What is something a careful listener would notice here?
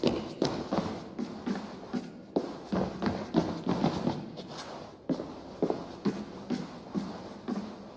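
Footsteps thud up wooden stairs.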